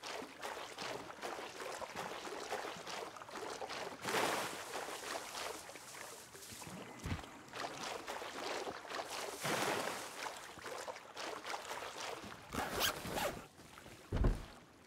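Water splashes and swishes as someone wades through it.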